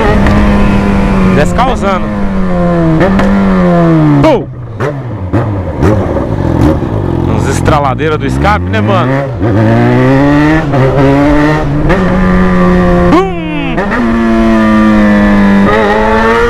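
A motorcycle engine revs up and drops back as it shifts gears, close by.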